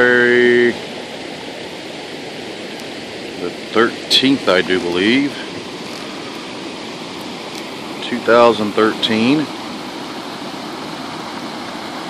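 Muddy floodwater rushes and gurgles steadily outdoors.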